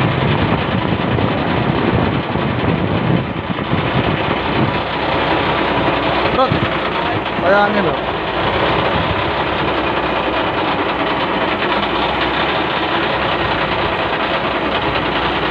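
A boat engine rumbles steadily close by.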